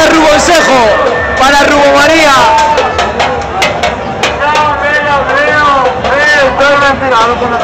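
A crowd of men and women sing loudly and close by.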